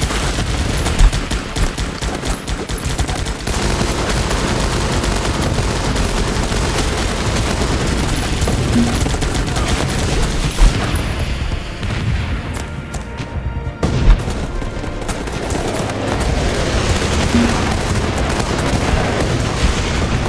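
Explosions boom now and then.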